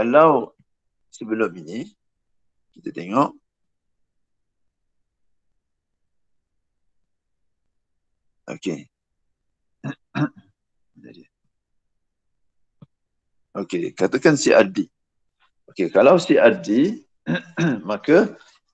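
A man speaks calmly in short phrases with pauses, heard through an online call.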